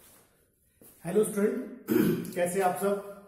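A middle-aged man speaks with animation close to the microphone.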